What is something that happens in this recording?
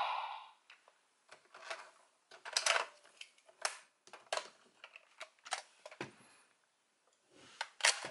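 Plastic toy parts click and snap as they are handled.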